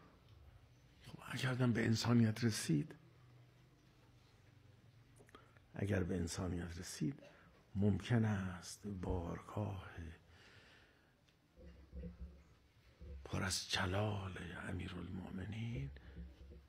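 An elderly man speaks with feeling into a microphone, in pauses.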